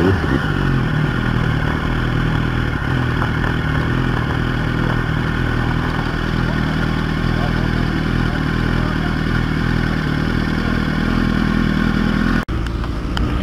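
A motorcycle engine idles steadily.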